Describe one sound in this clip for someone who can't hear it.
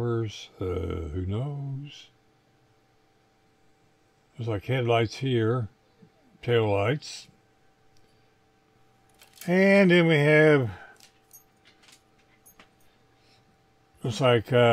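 Plastic model parts click and rattle as hands handle them.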